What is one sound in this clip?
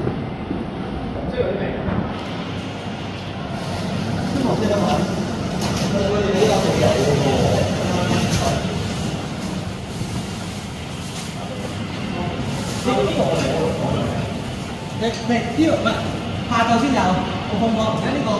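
An elevator car hums and rumbles steadily as it travels.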